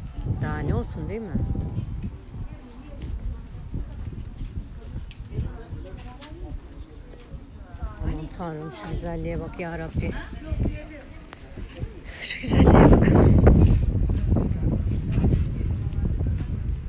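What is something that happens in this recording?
A crowd of men and women talks nearby outdoors.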